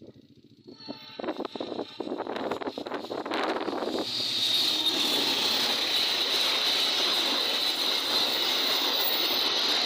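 A second train approaches and roars past close by.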